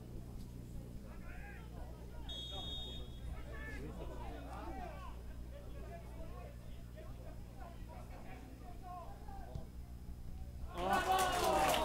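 Football players shout to each other outdoors across an open pitch.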